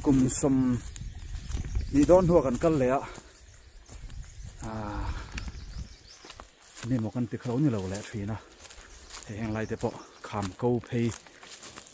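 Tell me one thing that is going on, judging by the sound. Footsteps crunch on dry grass and leaves.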